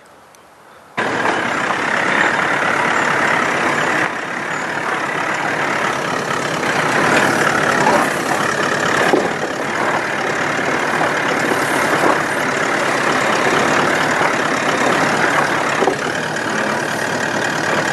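Tyres grind and crunch over rock and gravel.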